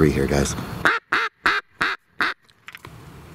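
Geese honk loudly several times.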